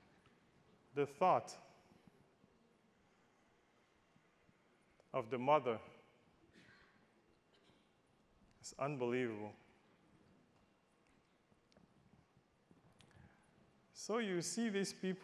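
A man speaks through a microphone in short bursts with long pauses.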